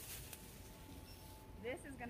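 Plastic shopping bags rustle.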